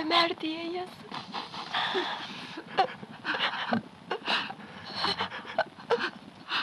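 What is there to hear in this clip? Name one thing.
An older woman speaks urgently and anxiously.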